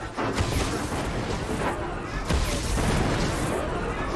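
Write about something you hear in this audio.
An energy weapon fires buzzing blasts.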